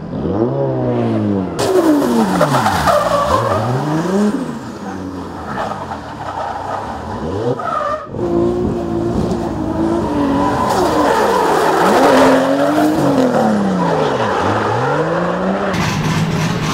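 A race car engine revs hard, rising and falling in pitch.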